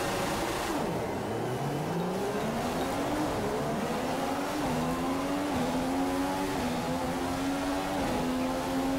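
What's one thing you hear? A racing car engine roars as it accelerates and shifts up through the gears.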